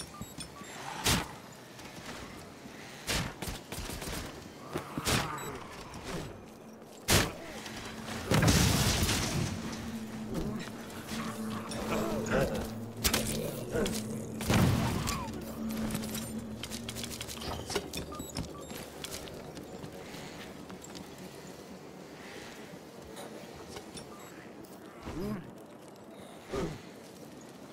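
Gunshots and blasts crack sharply now and then.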